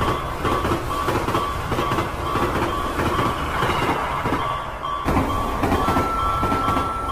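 A railway crossing bell rings in a quick, steady rhythm.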